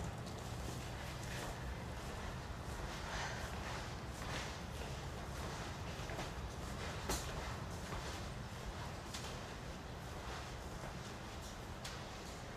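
A woman's footsteps echo in a hallway.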